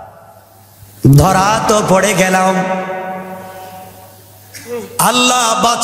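A young man chants in a long, drawn-out melodic voice through a microphone and loudspeakers, with an echo.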